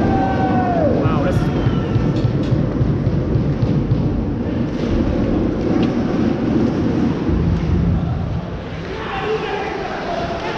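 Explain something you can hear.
A crowd murmurs steadily in the arena.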